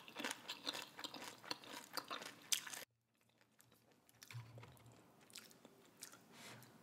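A woman chews and slurps noodles close to a microphone.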